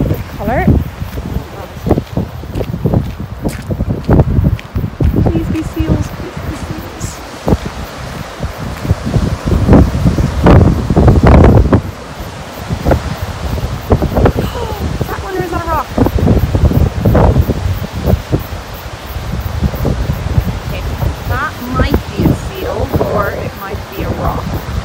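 Waves break and wash onto a shore in the distance.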